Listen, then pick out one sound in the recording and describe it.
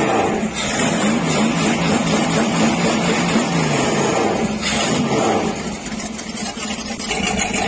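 A carbureted V8 marine inboard engine idles with a steady rumble.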